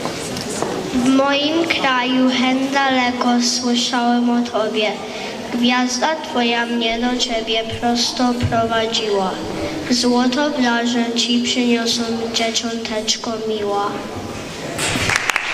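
A young boy sings through a microphone.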